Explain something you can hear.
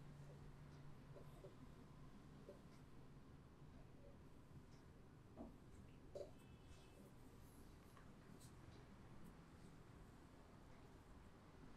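Hands softly rub and press on skin close by.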